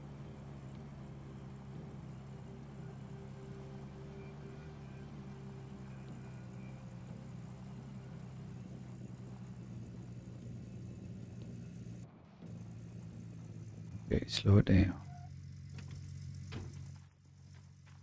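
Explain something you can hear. A truck engine hums steadily as it drives over rough ground.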